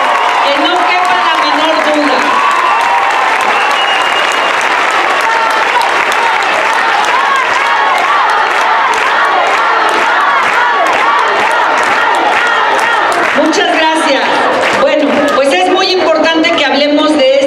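A crowd cheers and chants loudly.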